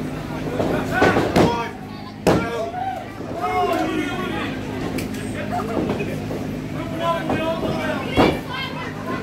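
Wrestlers slam onto a wrestling ring mat with hollow thuds.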